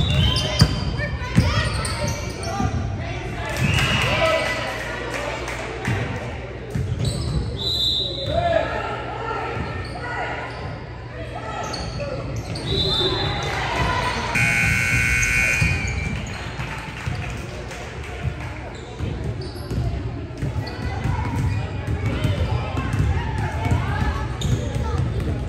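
Many girls talk and call out in a large echoing hall.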